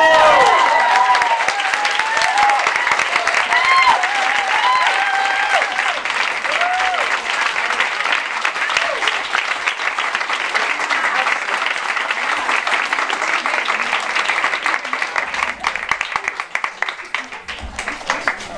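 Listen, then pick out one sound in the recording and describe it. A crowd claps and applauds loudly in a room.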